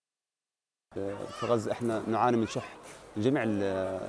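A second young man speaks calmly to a microphone, close by, outdoors.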